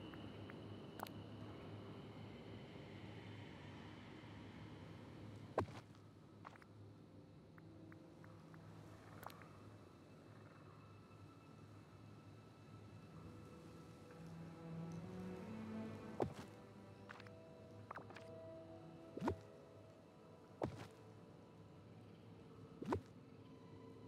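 Game menu clicks and placement chimes sound now and then.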